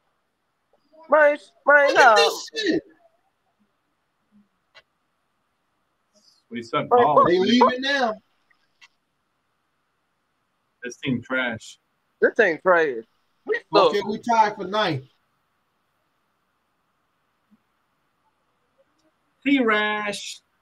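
A man talks with animation over an online call, in bursts with pauses.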